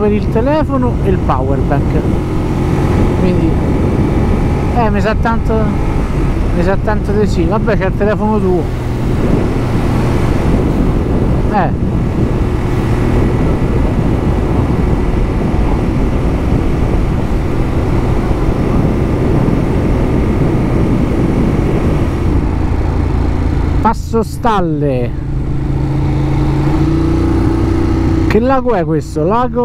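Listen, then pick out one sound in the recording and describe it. A motorcycle engine drones steadily at speed.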